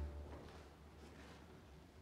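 A man softly hushes close by.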